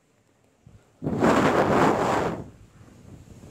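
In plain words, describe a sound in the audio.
Wind gusts through leafy trees outdoors.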